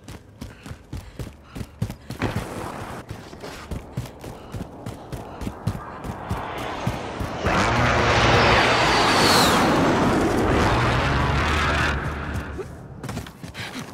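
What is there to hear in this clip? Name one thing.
Quick footsteps run over hard ground and grass.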